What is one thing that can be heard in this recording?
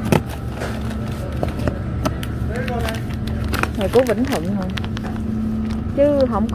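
Plastic food packets rustle and crinkle as a hand handles them.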